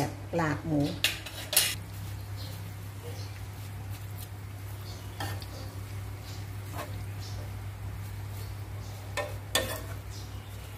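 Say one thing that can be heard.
A spatula scrapes and clatters against a pan while food is stirred.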